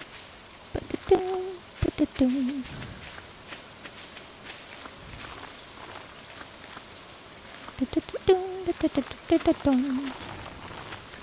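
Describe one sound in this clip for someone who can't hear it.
Short bright chimes sound as crops are picked.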